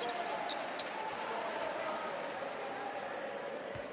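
Two players slap hands in a quick high five.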